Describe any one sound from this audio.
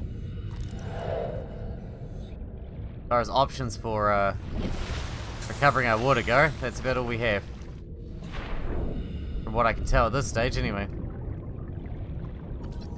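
A low underwater rumble hums steadily.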